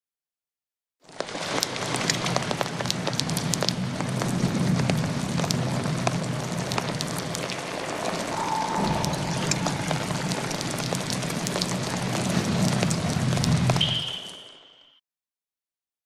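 Heavy rain patters and splashes steadily.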